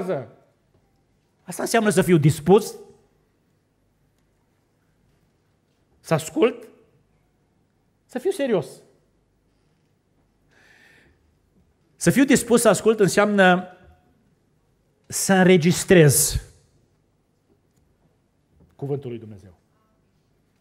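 A middle-aged man preaches with animation into a microphone, in bursts with pauses.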